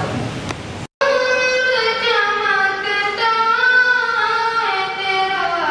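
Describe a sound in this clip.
A second boy recites in a long, sung melody through a microphone.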